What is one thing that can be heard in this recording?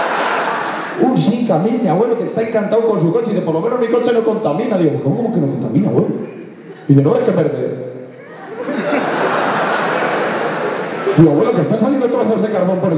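A young man sings into a microphone, heard through loudspeakers in a large hall.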